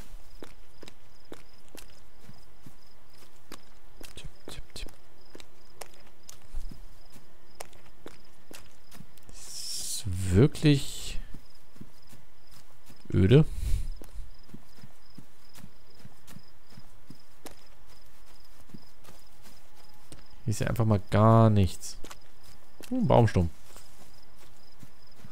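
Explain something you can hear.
Footsteps tread on grass.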